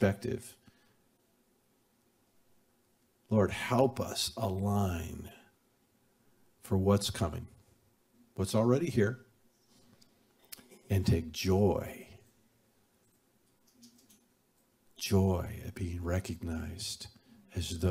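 An older man speaks calmly and expressively into a microphone, with pauses between phrases.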